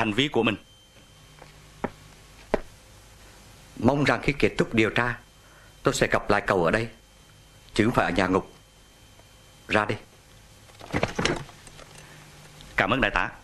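A man speaks in short, calm phrases nearby, with pauses between them.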